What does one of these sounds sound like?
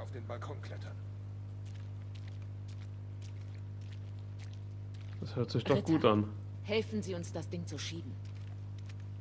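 Boots tread on wet pavement.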